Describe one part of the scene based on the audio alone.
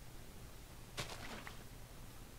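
Water splashes as a bucket is poured out.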